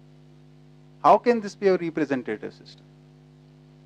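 A middle-aged man speaks briefly and calmly through a headset microphone.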